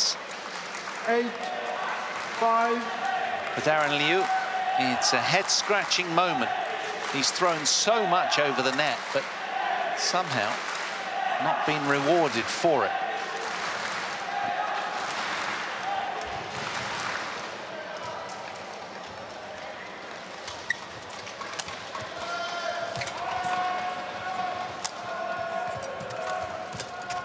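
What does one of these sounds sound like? A large crowd murmurs and calls out in an echoing hall.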